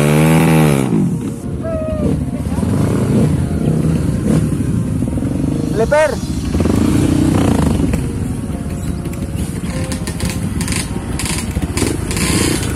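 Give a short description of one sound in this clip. Motorcycle engines idle and rumble close by.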